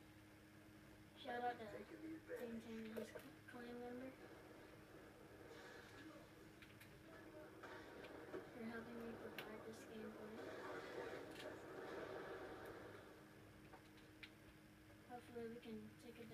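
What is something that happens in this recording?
Video game sounds play from a television.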